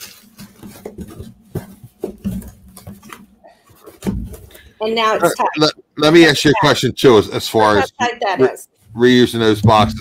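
A cardboard box scrapes and bumps as it is handled.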